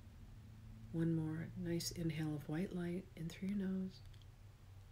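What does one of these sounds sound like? A middle-aged woman speaks slowly and calmly, close to the microphone.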